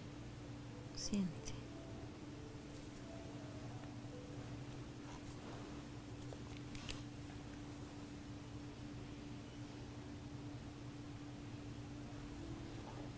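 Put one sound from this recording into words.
A woman breathes slowly and softly in her sleep.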